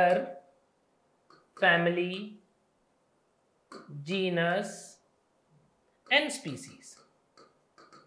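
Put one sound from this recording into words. A young man speaks clearly and with emphasis, close to a microphone, in short phrases.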